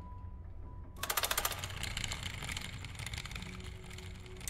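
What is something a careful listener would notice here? A small cart rattles along a track.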